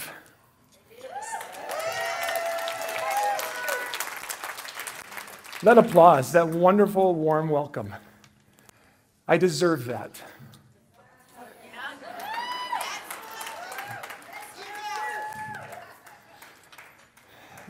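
An audience laughs and chatters.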